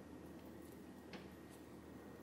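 A spoon scrapes softly against a plate.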